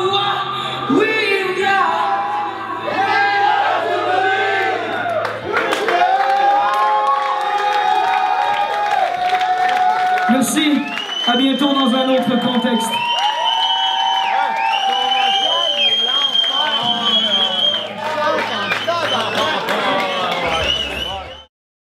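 A rock band plays loudly in a live room.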